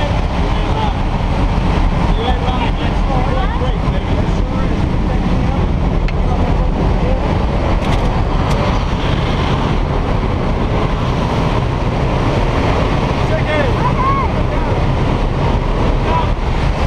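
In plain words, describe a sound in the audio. Wind roars loudly through an open aircraft door.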